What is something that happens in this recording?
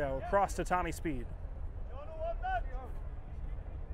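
Young men shout to each other on an open field.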